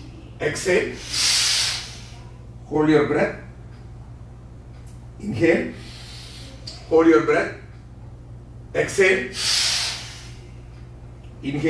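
A man breathes out loudly and slowly.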